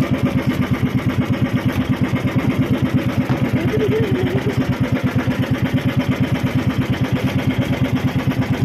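A small boat engine chugs steadily and close by.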